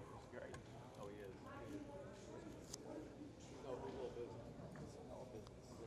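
A man talks with animation to a group of players up close.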